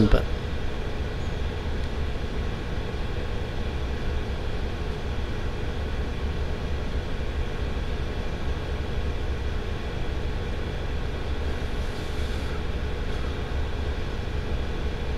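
Wind rumbles steadily across an open field outdoors.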